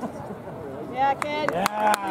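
Young spectators cheer and shout loudly.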